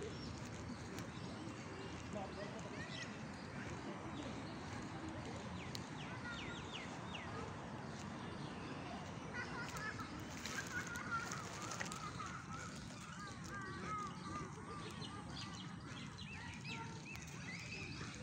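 Wind blows steadily outdoors, rustling through trees.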